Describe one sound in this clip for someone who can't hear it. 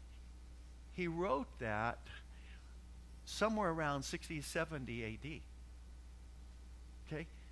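A middle-aged man speaks with animation, heard through a microphone in an echoing room.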